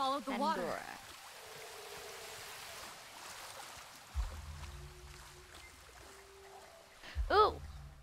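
Water splashes and trickles in a shallow stream.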